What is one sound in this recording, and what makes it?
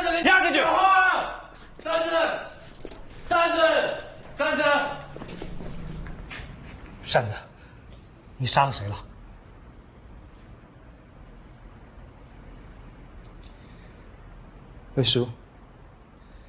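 A middle-aged man speaks urgently close by.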